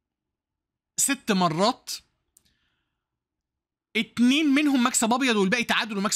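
A man speaks with animation through a close microphone.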